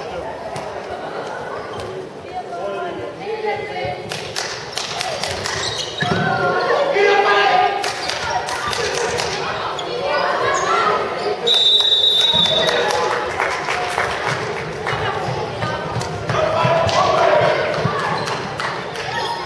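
Shoes squeak sharply on a hard floor in a large echoing hall.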